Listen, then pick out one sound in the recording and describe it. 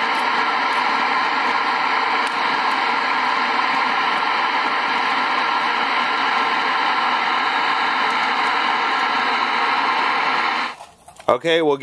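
An old television set hums and buzzes loudly and steadily, then cuts off.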